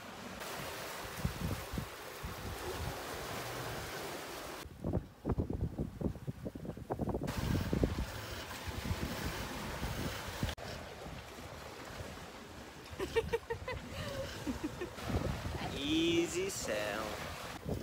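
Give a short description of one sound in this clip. Waves rush and splash against a boat's hull.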